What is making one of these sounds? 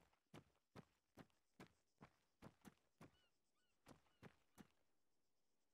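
Footsteps thud on hard ground at a steady walking pace.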